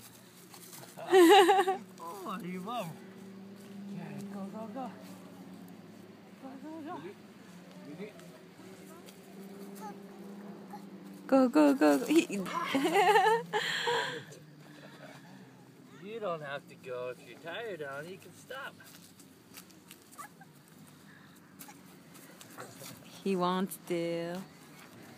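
A toddler babbles and squeals.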